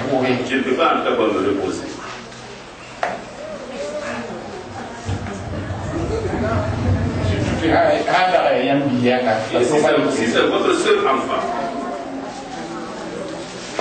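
Several young people talk and call out together close by.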